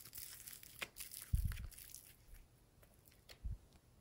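Fingers squish and press soft foam clay.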